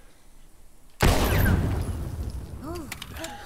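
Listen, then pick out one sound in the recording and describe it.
A pistol fires a single loud shot that echoes away.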